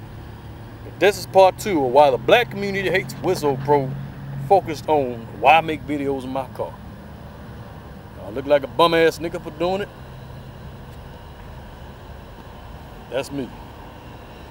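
A man speaks close to the microphone, with pauses.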